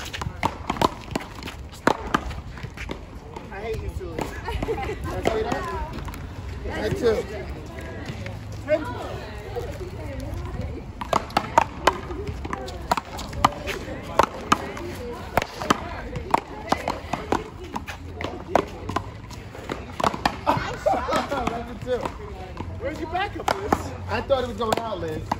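Paddles smack a ball against a wall with sharp pops.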